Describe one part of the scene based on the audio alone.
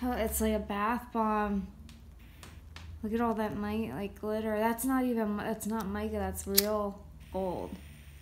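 A lighter clicks repeatedly.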